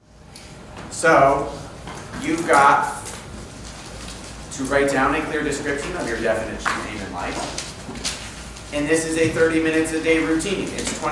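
A man speaks calmly and clearly into a nearby microphone.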